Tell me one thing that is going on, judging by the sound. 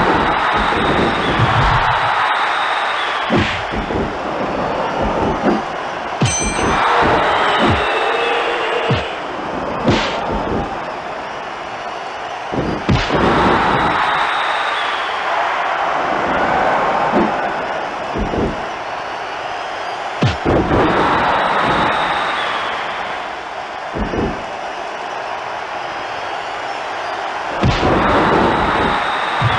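Punches and slams land with heavy thuds.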